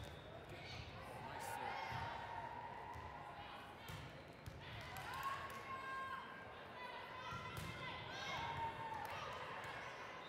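Young women call out and shout during play in a large echoing hall.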